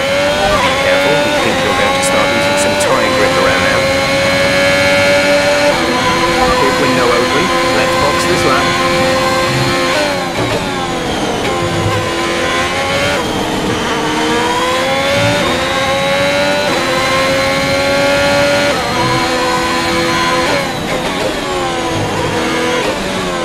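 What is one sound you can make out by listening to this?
A racing car engine screams at high revs, dropping in pitch as it shifts down and rising again as it speeds up.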